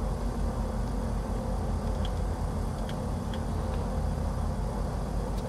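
A small aircraft engine idles with a steady low drone.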